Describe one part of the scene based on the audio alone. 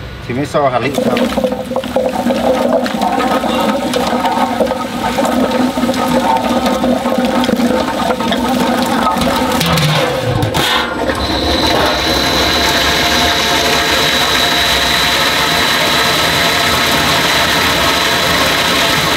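A machine's blades whir loudly as they churn food in a metal bowl.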